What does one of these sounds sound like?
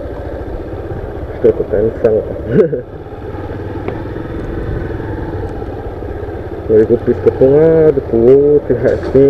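A motorcycle engine runs with a low, steady rumble as the bike rides slowly.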